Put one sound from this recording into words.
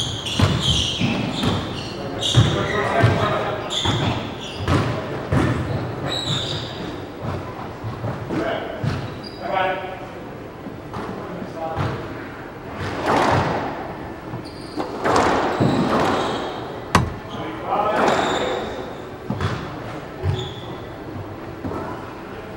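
A squash ball smacks off the walls of an echoing court.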